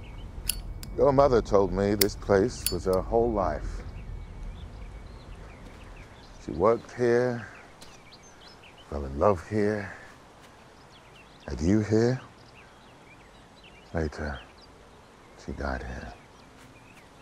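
A man speaks calmly and slowly, close by.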